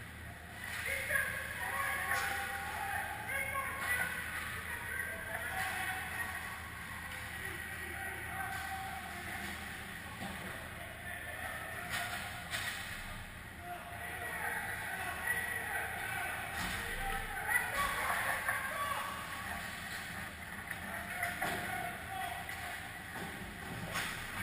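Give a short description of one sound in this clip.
Young players shout across a large echoing rink.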